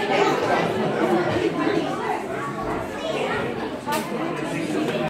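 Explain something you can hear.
A crowd of adults and children murmurs in the background.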